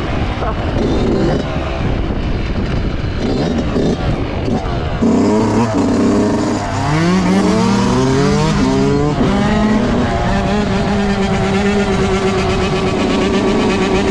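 A dirt bike engine idles and blips close by.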